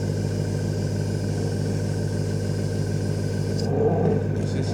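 An airbrush hisses softly with a steady rush of air.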